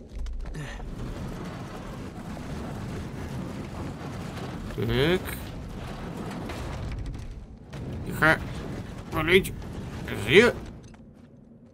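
A heavy wooden crate scrapes and grinds over a stone floor.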